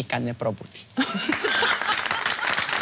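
A woman laughs heartily.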